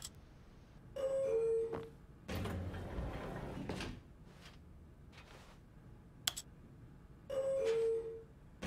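An elevator chime dings in two tones.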